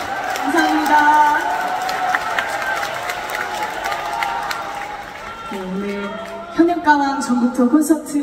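A young woman speaks into a microphone over a loudspeaker in a large echoing hall.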